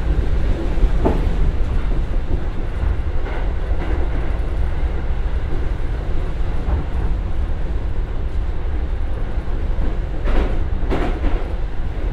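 Train wheels clack now and then over the rail joints.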